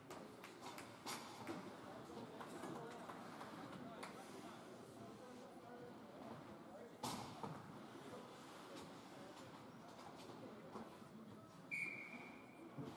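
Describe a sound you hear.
Ice hockey skates scrape and carve on ice in a large echoing rink.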